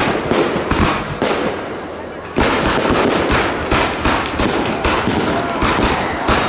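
Fireworks burst with rapid loud bangs and crackles.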